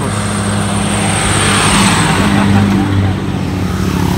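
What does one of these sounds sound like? A bus engine rumbles loudly close by as the bus drives past.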